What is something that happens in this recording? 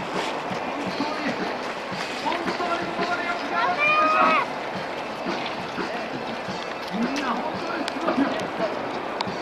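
Many runners' footsteps patter on a paved road.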